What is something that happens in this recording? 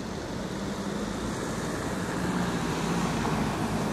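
A vehicle drives past close by.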